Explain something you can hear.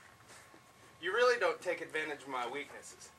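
A young man shouts loudly outdoors.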